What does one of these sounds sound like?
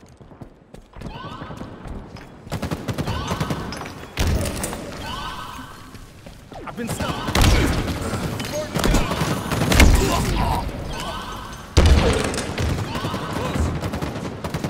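Rapid gunfire bursts and explosions boom in a video game.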